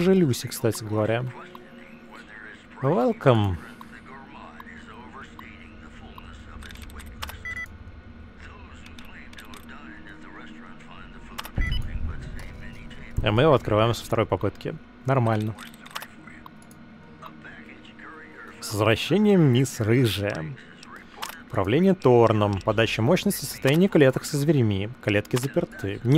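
A computer terminal clicks and beeps as text prints out.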